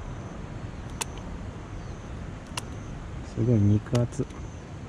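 Garden shears snip through a plant stem.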